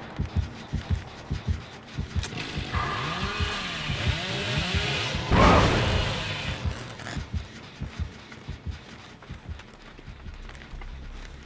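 Footsteps thud quickly on the ground.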